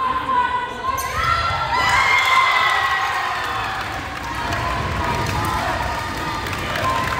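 Spectators cheer and shout in a large echoing gym.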